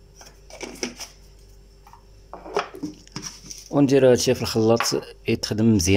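A plastic lid is pressed onto a blender jug with a clack.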